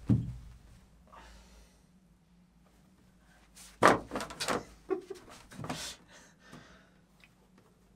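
A wooden stool scrapes and knocks on the floor.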